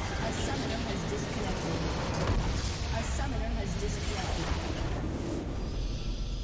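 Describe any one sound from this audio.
A huge explosion booms and crackles, then rumbles away.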